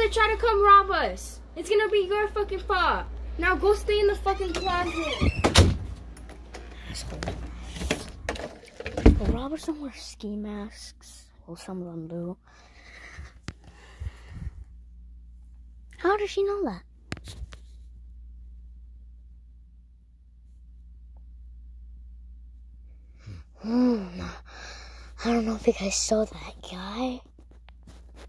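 A young boy talks with animation close to the microphone.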